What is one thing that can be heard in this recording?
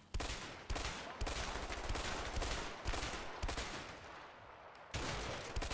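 Pistol shots ring out in quick bursts, echoing outdoors.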